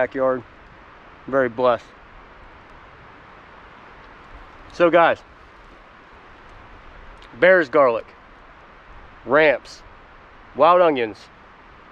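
A man speaks calmly in short bursts close by.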